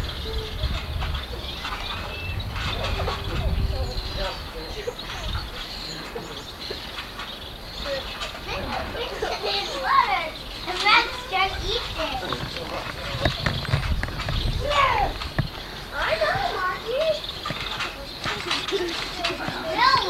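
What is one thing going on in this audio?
A trampoline mat thumps and creaks as someone bounces on it.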